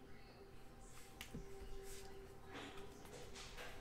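Trading cards shuffle and flick in hands.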